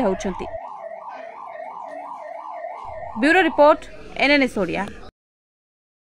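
An ambulance siren wails in quick rising and falling cycles close by, then cuts off abruptly.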